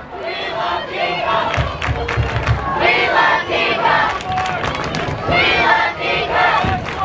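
A crowd of young people cheers and chatters nearby, outdoors.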